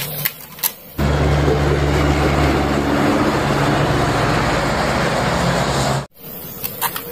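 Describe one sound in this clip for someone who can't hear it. A lorry's diesel engine rumbles as it slowly turns at a crossing.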